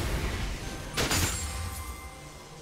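A magic beam zaps sharply.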